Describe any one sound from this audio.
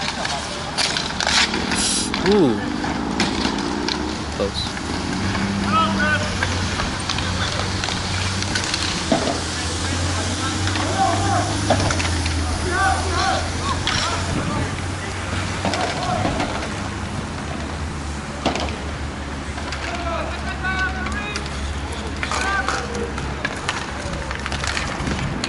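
Plastic wheels of inline skates roll and scrape on a hard outdoor rink.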